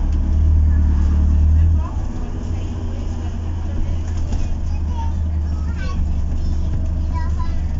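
A bus rattles and vibrates over the road.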